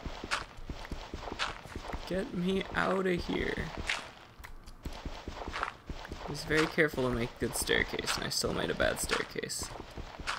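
Dirt crunches in short bursts as it is dug out.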